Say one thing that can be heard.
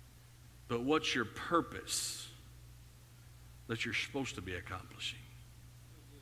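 A man speaks through a microphone over loudspeakers in a large room.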